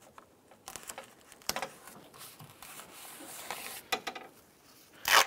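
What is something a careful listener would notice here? Foil tape crinkles and rustles under hands pressing it down.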